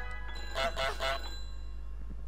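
A goose honks loudly.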